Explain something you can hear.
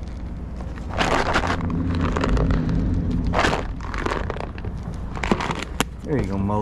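Cat treats rattle in a plastic tub.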